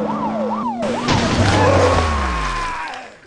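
A vehicle crashes with a loud, rumbling impact.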